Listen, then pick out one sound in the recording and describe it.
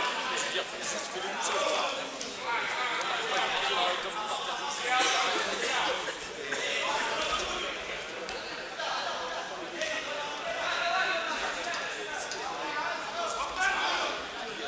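Spectators shout and call out encouragement in a large echoing hall.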